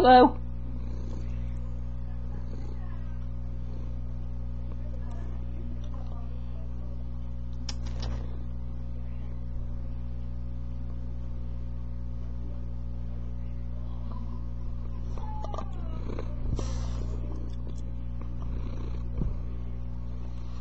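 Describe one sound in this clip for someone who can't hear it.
A cat purrs steadily close by.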